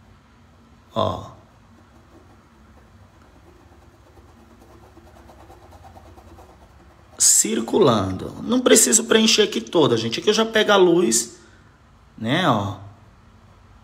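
A paintbrush dabs softly on paper.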